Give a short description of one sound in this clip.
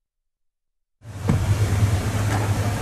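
A crowd bustles and murmurs outdoors.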